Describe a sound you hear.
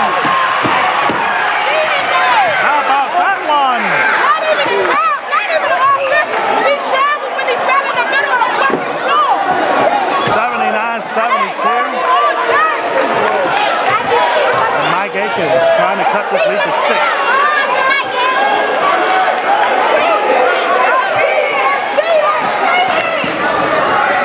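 Teenage boys and adult spectators shout and call out in an echoing gym.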